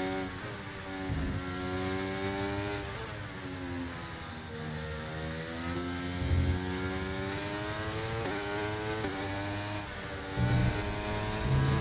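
A racing car engine whines loudly, rising in pitch and dropping with each gear change.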